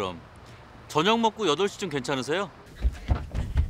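A young man talks on a phone with animation.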